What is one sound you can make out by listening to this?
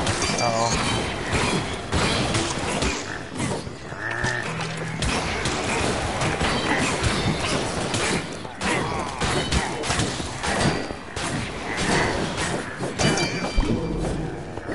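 Magic spells burst and crackle.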